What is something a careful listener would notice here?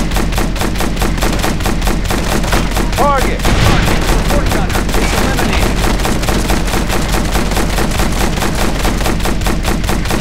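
A heavy machine gun fires in rapid, steady bursts.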